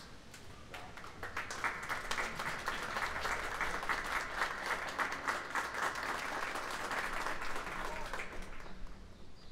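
An audience applauds outdoors, then the clapping dies away.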